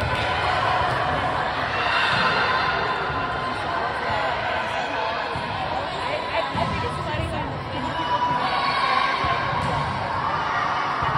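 Girls' voices chatter and call out around a large echoing gym.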